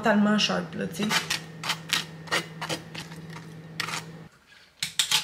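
A knife scrapes across toast.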